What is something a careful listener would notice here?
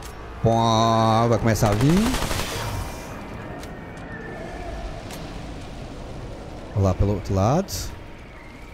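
A man speaks with animation into a nearby microphone.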